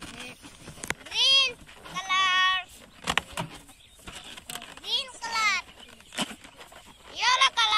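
Children shout and squeal excitedly nearby.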